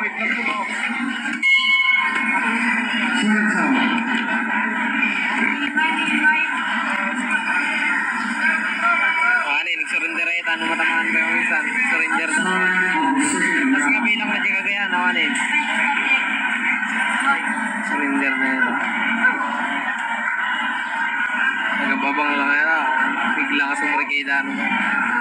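A crowd of people talks and shouts nearby.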